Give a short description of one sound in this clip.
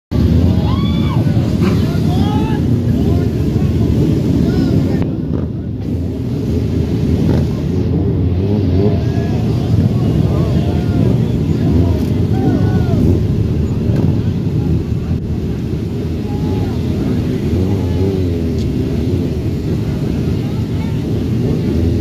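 Motorcycle engines rev loudly nearby.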